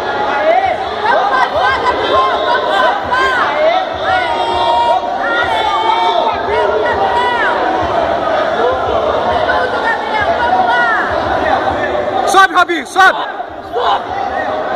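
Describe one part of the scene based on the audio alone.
A crowd of spectators shouts and cheers loudly in a large echoing hall.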